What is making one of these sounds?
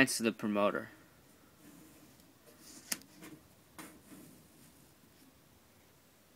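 A paper cutout slides and rustles across paper.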